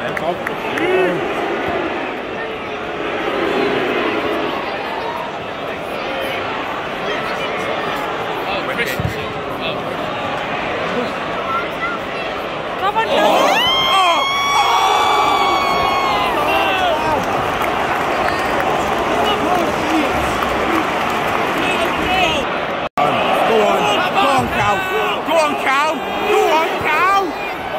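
A large stadium crowd chants and sings loudly outdoors.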